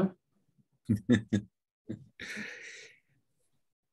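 A middle-aged man laughs softly over an online call.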